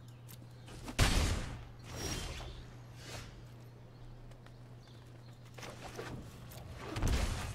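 Card game sound effects whoosh and thud.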